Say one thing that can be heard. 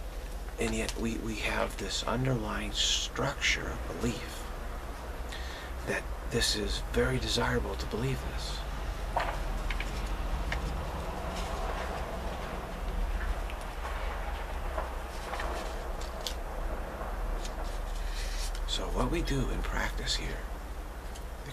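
A middle-aged man speaks calmly and close up, in bursts with long pauses.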